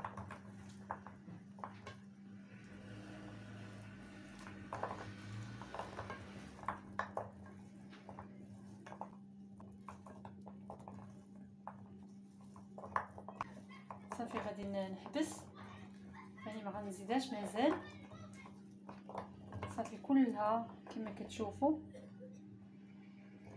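Small crisp pastries clatter and rustle softly as hands sort them in a dish.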